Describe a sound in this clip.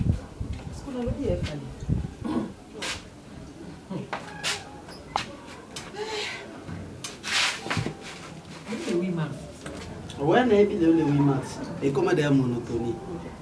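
A woman speaks loudly nearby.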